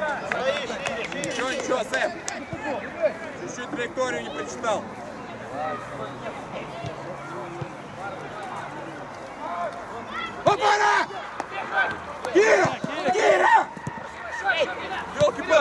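Football players shout and call to each other across an open pitch.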